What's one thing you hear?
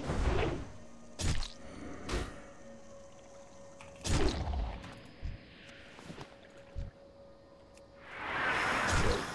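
Magic spells burst with sharp whooshing blasts.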